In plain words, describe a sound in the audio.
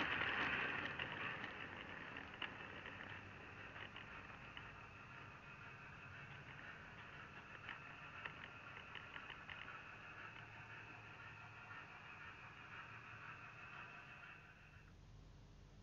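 A small electric motor whirs steadily as a model train runs along.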